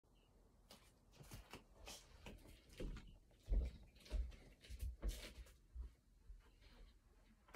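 Bare feet thump and shuffle across a floor.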